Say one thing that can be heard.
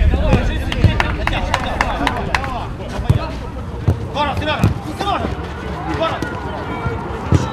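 Young men shout to each other across an outdoor pitch.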